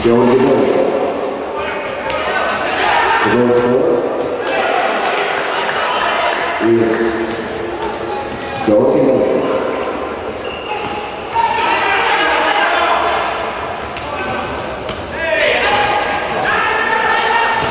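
A futsal ball is kicked on an indoor court.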